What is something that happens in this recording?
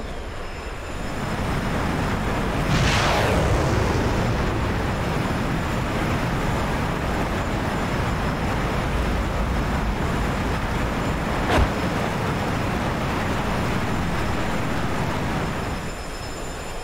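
A jet engine roars loudly as a jet flies past.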